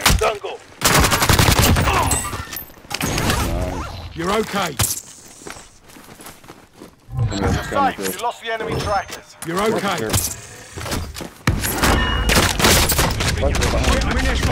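Gunshots rattle in rapid bursts.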